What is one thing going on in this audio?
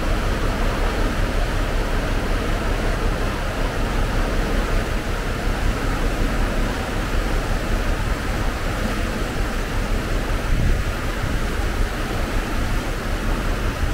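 Water rushes and churns in a boat's wake.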